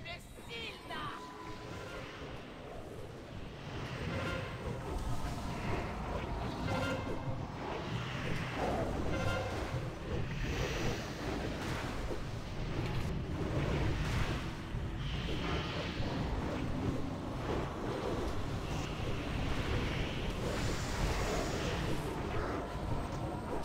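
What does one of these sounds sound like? Game spells and weapon strikes clash and burst in a busy battle.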